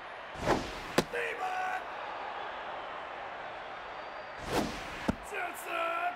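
A pitched ball smacks into a catcher's mitt.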